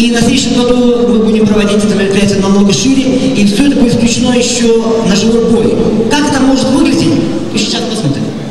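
An elderly man announces through a loudspeaker in a large echoing hall.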